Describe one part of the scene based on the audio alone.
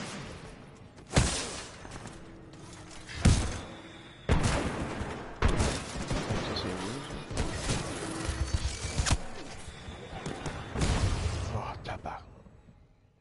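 Gunfire and explosions boom loudly.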